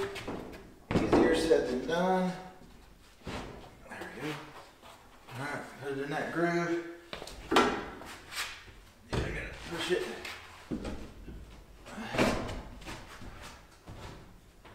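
Wooden boards knock and thud as a man fits them into place.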